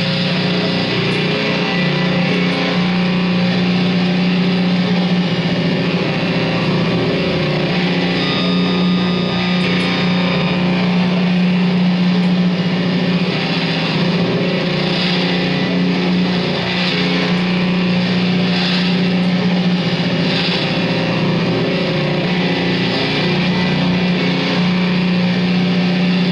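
Loud experimental electronic music drones and buzzes through amplifiers.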